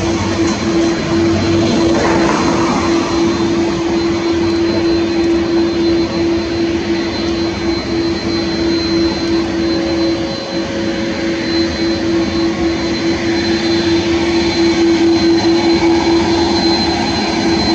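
Jet engines roar and whine steadily close by.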